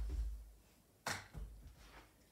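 A stick sharply strikes a ball.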